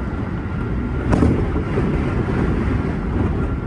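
A passing train rushes by close alongside.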